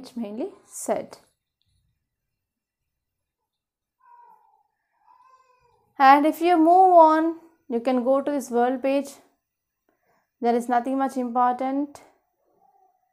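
A young woman speaks clearly and calmly close by, in short phrases.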